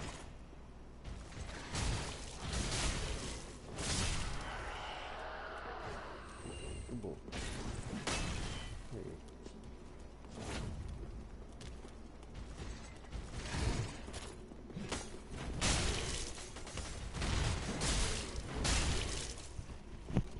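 Footsteps thud on stone steps.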